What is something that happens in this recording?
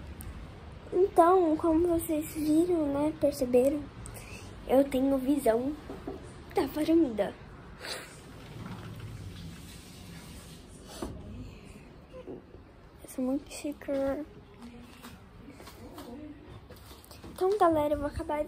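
A young girl talks with animation close to a phone microphone.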